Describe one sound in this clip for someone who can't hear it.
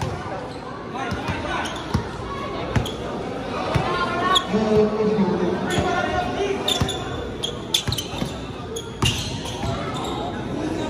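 A basketball bounces repeatedly on a wooden court in a large echoing hall.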